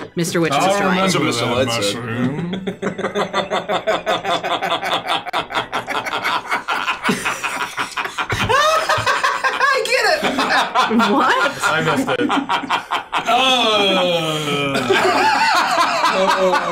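A young man talks with animation over a microphone.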